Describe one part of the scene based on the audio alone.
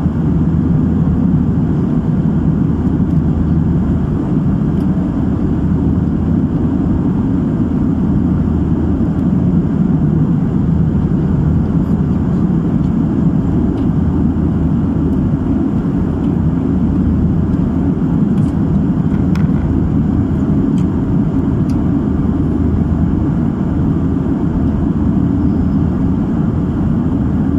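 A jet airliner's engines roar steadily in flight, heard from inside the cabin.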